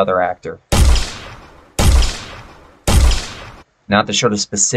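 A game weapon fires three loud shots.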